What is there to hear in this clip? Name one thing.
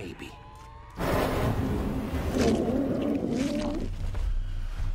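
An energy blast crackles and bursts loudly.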